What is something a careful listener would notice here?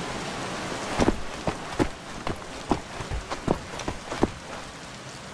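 Footsteps thud on a hard floor, heard inside an echoing stone hall.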